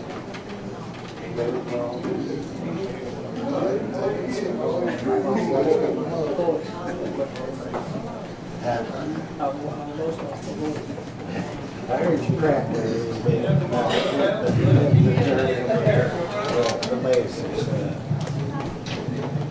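Women sing together through microphones in an echoing room.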